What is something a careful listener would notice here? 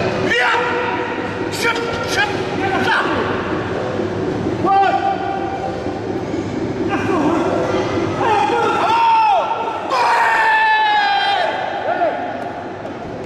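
Men shout loud encouragement nearby in a large echoing hall.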